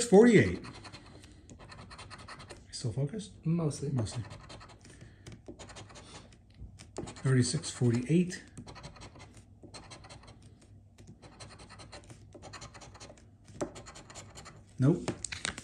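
A coin scratches across a card with a dry rasping sound.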